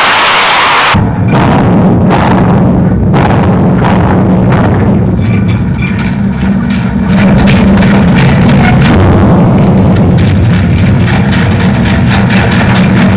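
A small motorised carriage rumbles along a metal track with a steady low hum.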